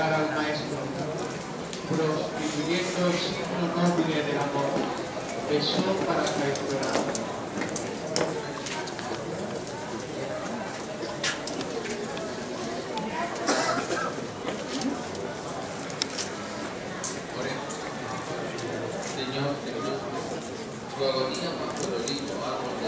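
A crowd murmurs softly outdoors.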